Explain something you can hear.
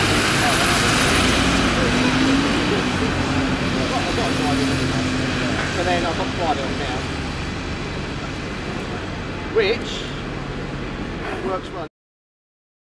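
A double-decker bus idles with a low engine rumble.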